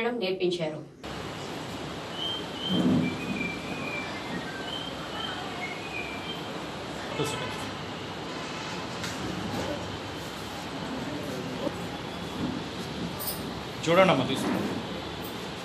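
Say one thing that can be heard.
A small group of people murmur quietly in a room.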